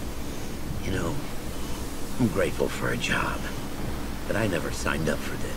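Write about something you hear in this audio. A man speaks in a tired, worried voice, close by.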